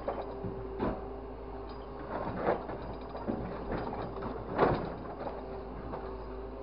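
A truck-mounted crane's diesel engine runs.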